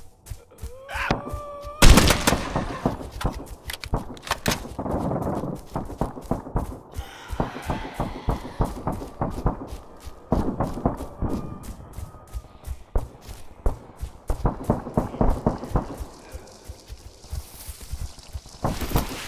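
Footsteps run quickly through grass and over dirt.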